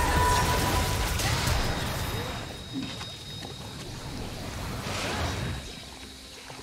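Magical blasts burst and crackle in a quick fight.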